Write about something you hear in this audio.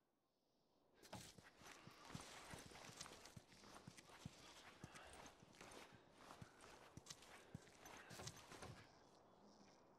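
Soft footsteps creep across pavement.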